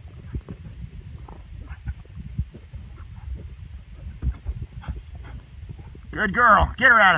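Hooves thud softly on the ground.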